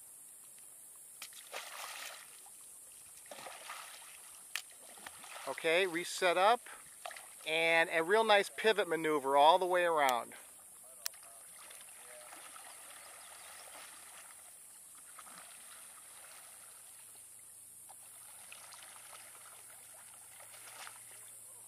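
A paddle splashes softly in water.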